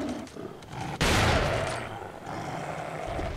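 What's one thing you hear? A shotgun fires with a loud boom.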